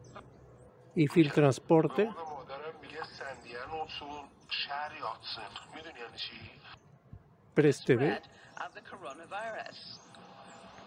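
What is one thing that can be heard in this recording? A woman talks calmly through a television speaker.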